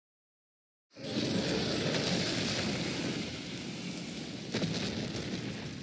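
A large beast roars loudly.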